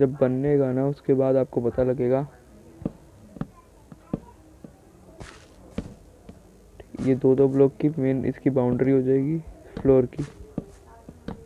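Wooden blocks are set down with short, soft knocks.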